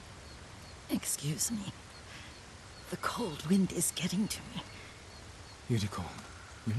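An elderly woman speaks weakly and hoarsely.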